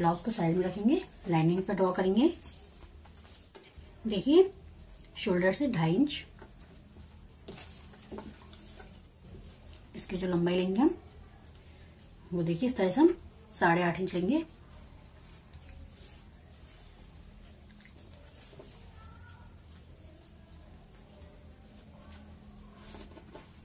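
Cloth rustles softly as hands smooth and fold it.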